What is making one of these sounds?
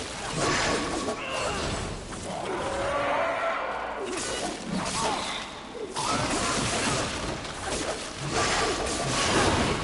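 A whip lashes and cracks repeatedly.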